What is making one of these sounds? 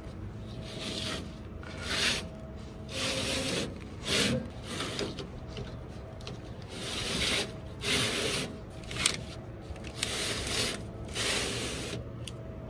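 A metal filter scrapes as it slides in and out of a frame.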